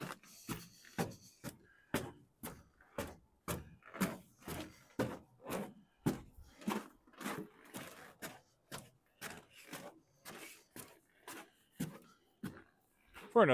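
Footsteps thud and crunch up snowy wooden stairs at a steady pace.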